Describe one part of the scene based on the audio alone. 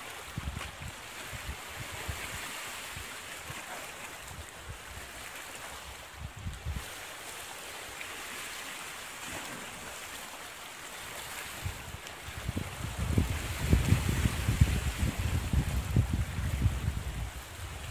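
Wind buffets loudly outdoors by open water.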